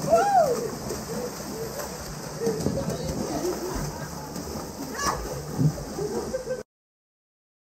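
Water splashes loudly as people thrash about in a pool.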